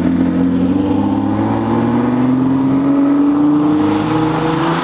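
A sports car engine revs hard and roars nearby.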